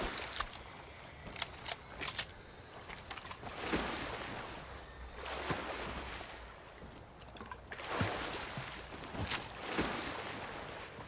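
Water splashes as a character swims.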